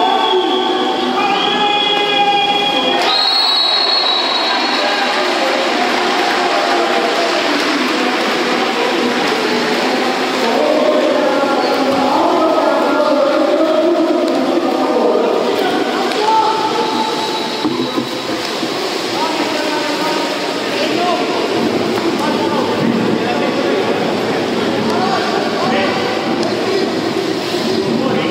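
Water splashes as swimmers thrash and stroke through a pool.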